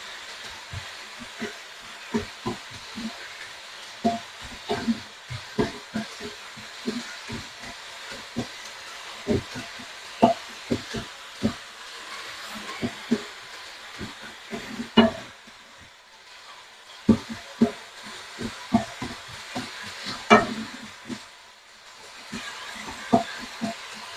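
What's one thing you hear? Food sizzles gently in a hot pan.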